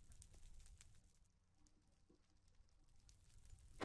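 Stone blocks crunch as they are dug away.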